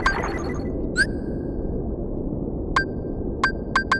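Menu selections click with short beeps.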